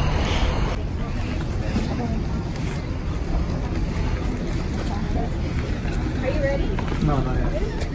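People talk quietly in the distance outdoors.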